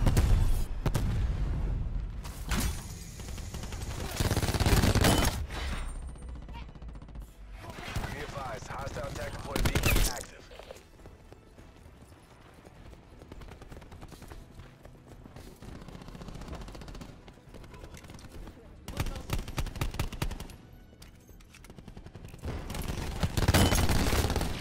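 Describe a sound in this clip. Gunfire crackles in rapid bursts from a video game.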